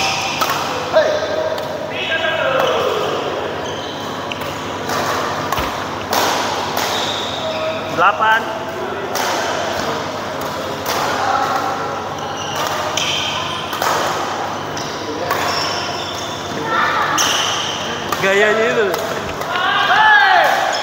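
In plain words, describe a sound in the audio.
Several men and women call out to each other across the hall.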